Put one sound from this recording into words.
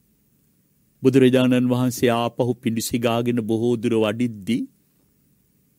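An elderly man chants in a steady, drawn-out voice close to a microphone.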